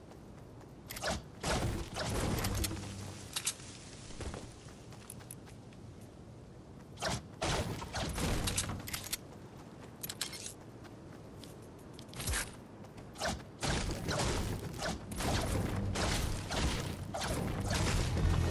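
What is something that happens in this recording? A pickaxe strikes wood with sharp thuds.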